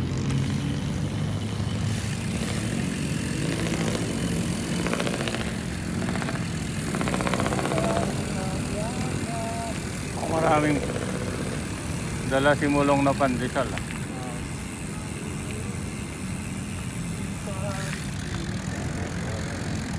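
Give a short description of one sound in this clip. Wind rushes and rumbles past a moving bicycle.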